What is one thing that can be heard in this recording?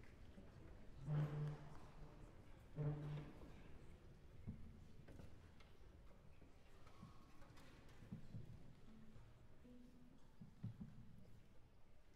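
A cello plays a few soft, low notes.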